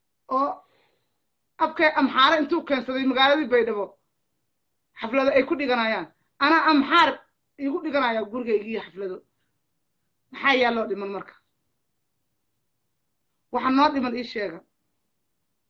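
A woman speaks with animation close to a microphone, pausing between phrases.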